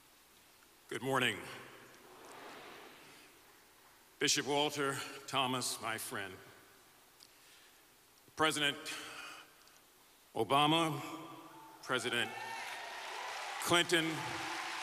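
A middle-aged man speaks slowly and solemnly into a microphone, heard through loudspeakers in a large echoing hall.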